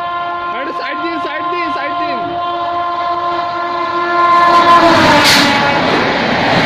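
A train horn blares loudly and drops in pitch as the train nears.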